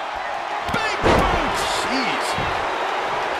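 A body slams heavily onto a wrestling ring with a loud thud.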